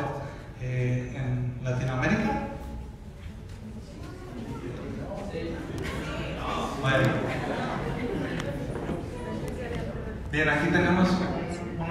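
A man speaks into a microphone over loudspeakers in a large echoing hall.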